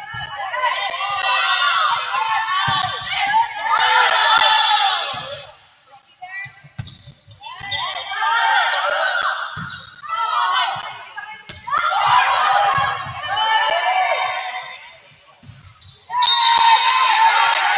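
A volleyball is struck with sharp thumps.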